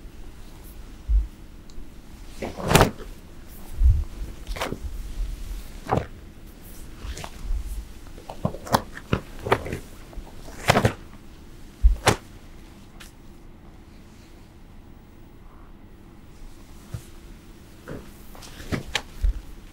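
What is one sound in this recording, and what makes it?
Feet thump and slide on a stage floor.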